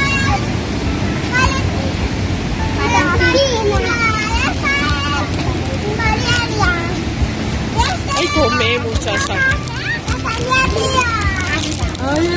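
Young children talk and chatter excitedly close by.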